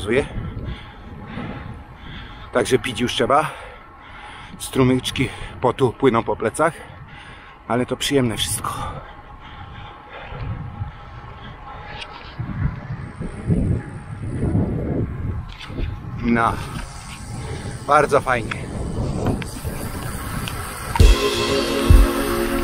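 A middle-aged man talks with animation close to a microphone.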